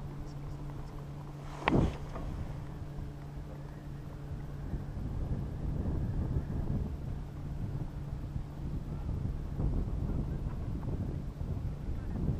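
Wind rushes and buffets past on an open chairlift ride.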